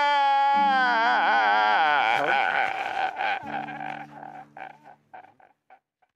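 A middle-aged man sobs in short, broken gasps that fade away.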